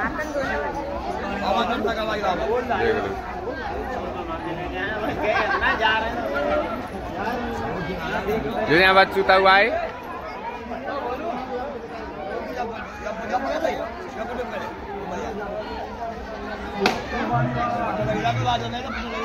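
Several men talk over one another close by, outdoors.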